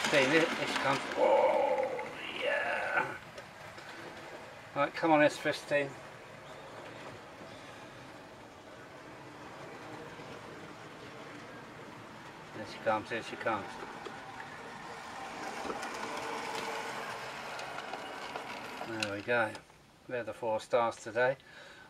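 A model steam locomotive rolls along track.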